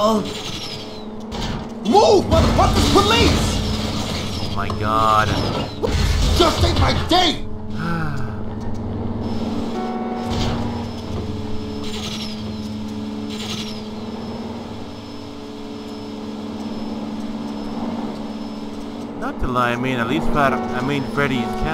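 A car engine hums steadily as a car drives along.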